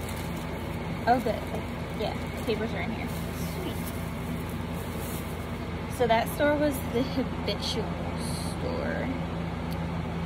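A young woman speaks casually, close by.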